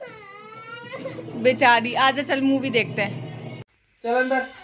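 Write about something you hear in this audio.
A small child cries out in short whining bursts.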